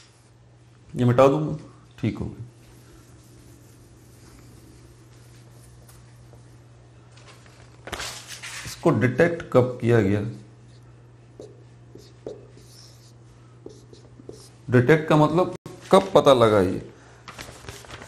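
A man speaks calmly and clearly through a close microphone.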